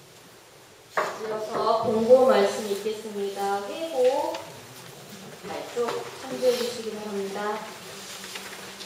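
A woman prays aloud in a steady, chanting voice.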